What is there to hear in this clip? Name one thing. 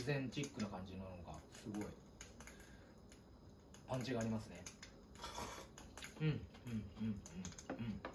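A young man slurps noodles.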